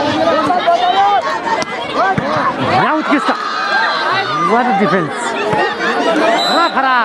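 A large crowd of spectators shouts and cheers loudly outdoors.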